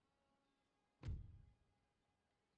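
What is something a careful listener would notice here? A short, deep thud rings out and fades.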